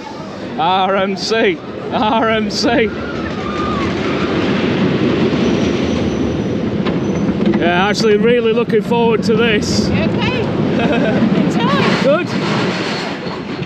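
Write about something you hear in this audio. Roller coaster cars rattle and rumble along a wooden track.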